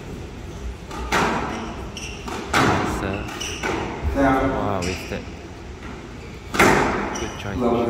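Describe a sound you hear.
A squash ball smacks hard against the walls in a rally, echoing in a large hall.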